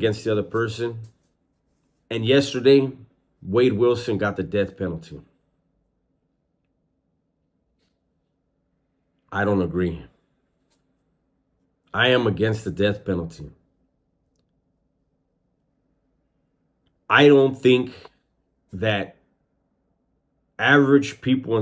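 A man speaks calmly and closely into a microphone, in short bursts with long pauses.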